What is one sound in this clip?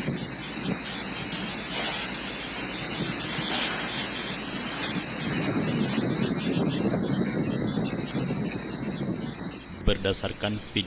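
Strong wind roars and gusts outdoors.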